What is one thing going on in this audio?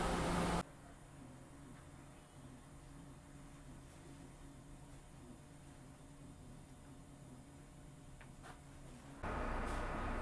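A train's power cuts out, leaving a faint low hum.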